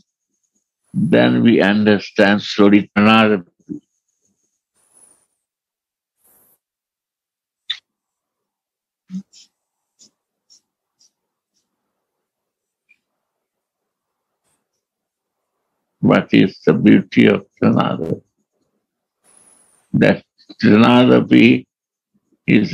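An elderly man speaks calmly over an online call, with long pauses.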